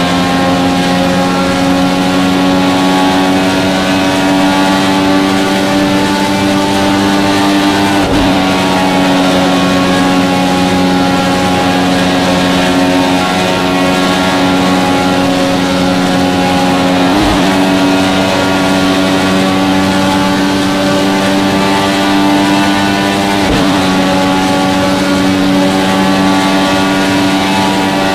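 A racing car engine roars at high speed, steady and high-pitched.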